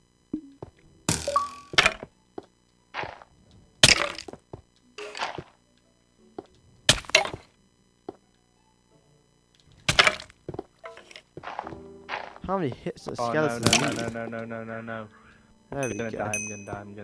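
A pickaxe chips at stone in short, sharp knocks.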